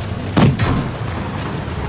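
A tank cannon fires with a sharp boom.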